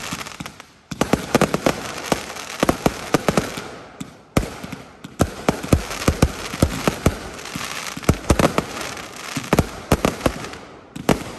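Sparks from fireworks fizz and hiss steadily.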